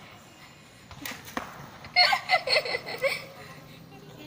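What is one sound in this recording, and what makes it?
Young girls laugh loudly nearby.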